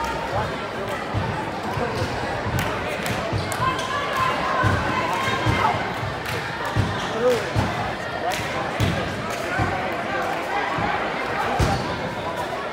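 A basketball thuds as it bounces on the court.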